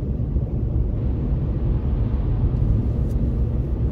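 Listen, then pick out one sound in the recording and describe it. A car passes alongside.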